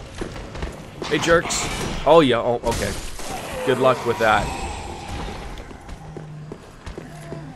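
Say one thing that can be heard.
Swords clash and clang in combat.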